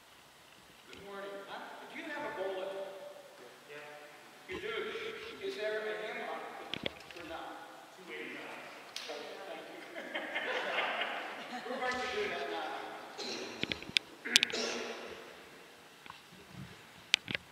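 A man speaks with animation from a distance in a large echoing hall.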